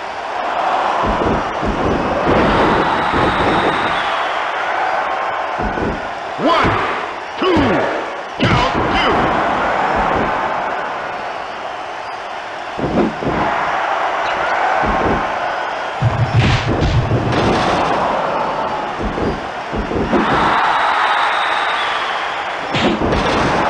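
Heavy blows and body slams thud.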